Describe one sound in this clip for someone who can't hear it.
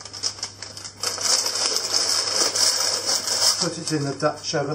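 Baking paper rustles and crinkles.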